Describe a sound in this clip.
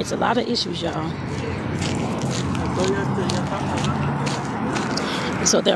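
A middle-aged woman talks casually, close by.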